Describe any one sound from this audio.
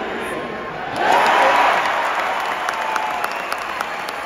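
A crowd roars loudly as a basket is scored.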